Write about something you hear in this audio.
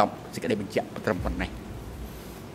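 An elderly man speaks into a microphone, close by.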